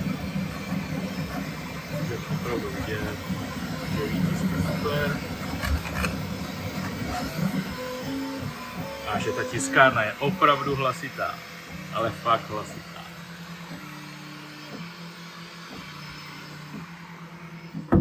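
A 3D printer's motors whir as its print head moves.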